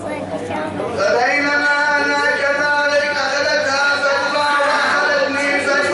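A middle-aged man chants loudly with long, held notes close by.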